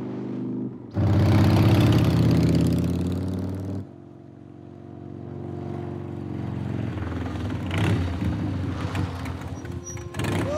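A motorcycle engine rumbles and revs nearby.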